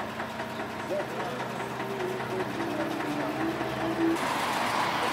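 Old tractor engines idle with a low steady chugging.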